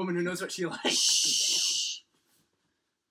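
A blanket rustles briefly.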